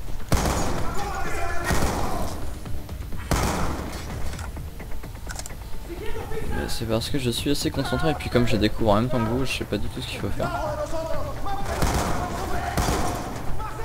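Automatic gunfire rattles in loud bursts.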